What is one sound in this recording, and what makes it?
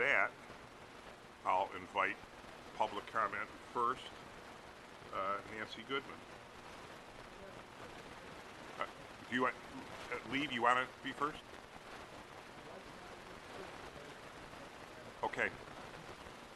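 A man speaks in short phrases through a microphone in a large room.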